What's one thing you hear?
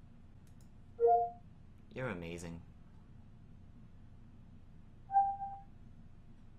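A computer gives a short two-tone chime.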